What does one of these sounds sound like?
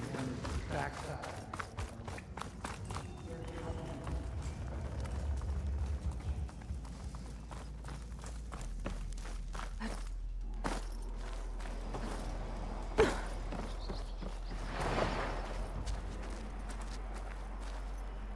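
Footsteps run quickly over gravel and wooden boards.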